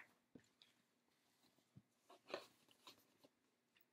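Papers rustle as a woman handles them.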